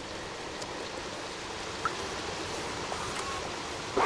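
A cat's paws patter softly on wooden boards.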